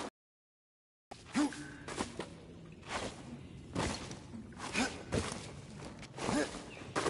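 Hands grab and rustle through vines while climbing.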